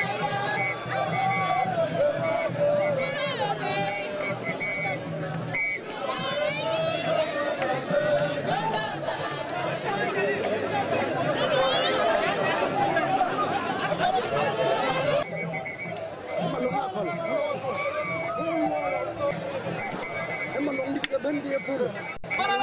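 A large crowd cheers and shouts in the open air.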